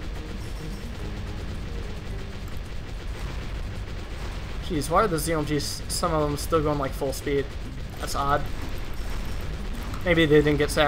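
Video game blasts and pops crackle rapidly.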